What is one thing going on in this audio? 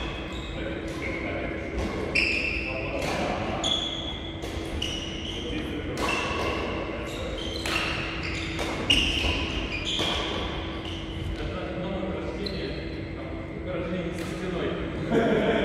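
Sports shoes squeak on a hard court floor.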